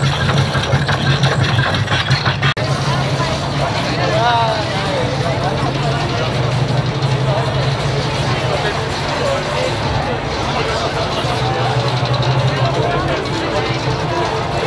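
Loud pounding dance music plays from a sound truck.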